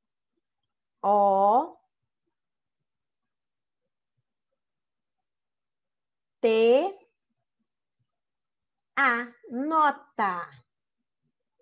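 A woman speaks clearly and slowly through an online call, saying single words with pauses between them.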